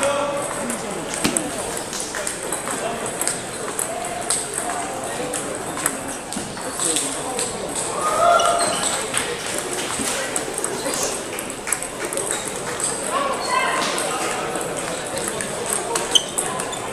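A crowd of people chatter in the background of a large echoing hall.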